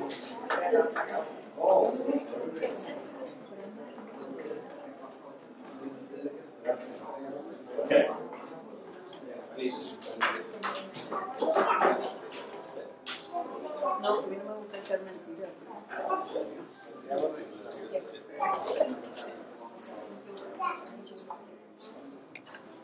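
Men and women chat in a murmuring crowd in a room with some echo.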